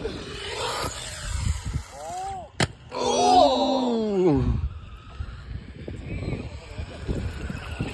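A small electric motor of a toy car whines, rising and falling in pitch.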